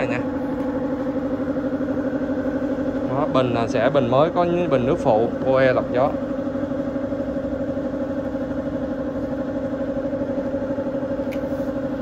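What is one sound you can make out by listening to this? A tractor engine idles with a steady, throbbing hum close by.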